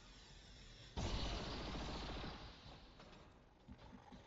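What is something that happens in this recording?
An energy weapon fires with a loud, roaring blast.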